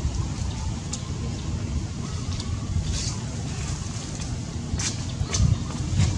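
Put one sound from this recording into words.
Leaves rustle as a monkey shifts on a branch.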